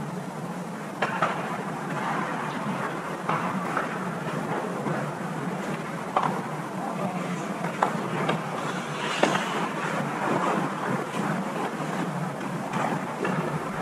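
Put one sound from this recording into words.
Hockey sticks clack against a puck on the ice.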